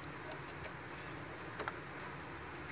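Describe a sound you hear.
A plastic part clicks as a hand presses it into place.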